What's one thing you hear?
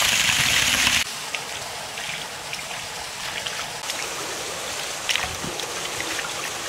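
Hands swish and splash through water in a basin.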